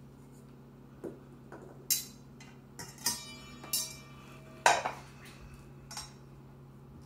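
A metal lid clanks and scrapes on a glass jar.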